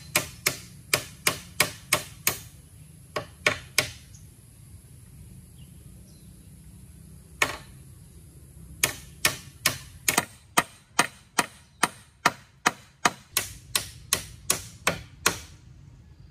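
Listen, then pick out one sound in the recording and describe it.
A hammer knocks steadily on bamboo poles, in bursts of quick blows.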